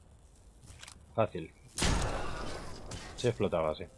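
A pistol fires once with a sharp bang.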